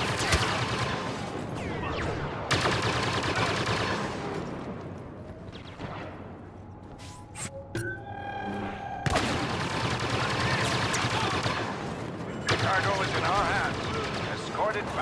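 Explosions and battle noise rumble all around.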